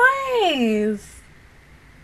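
A young woman close to a microphone gives a short, high sound with her voice that slides down in pitch.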